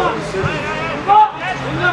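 A man shouts from the sideline outdoors.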